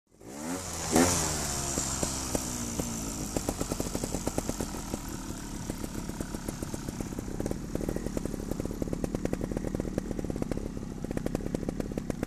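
A trials motorcycle engine revs and chugs as the bike rides over rough ground.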